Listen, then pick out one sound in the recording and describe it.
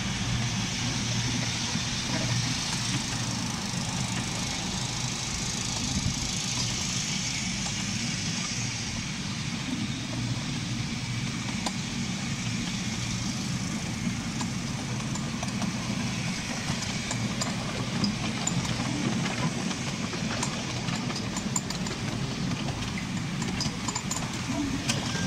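A miniature train rumbles steadily along its track.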